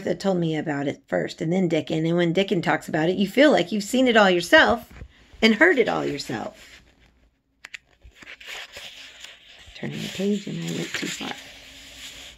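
A middle-aged woman speaks calmly and close to a microphone.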